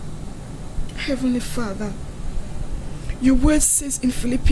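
A young woman speaks softly and earnestly through a microphone.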